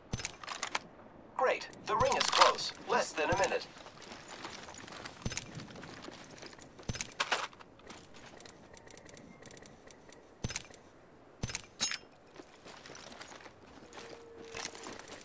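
A video game's menu clicks and ticks as items are scrolled through.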